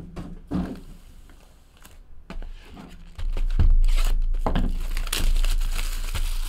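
Cardboard boxes knock and slide against each other.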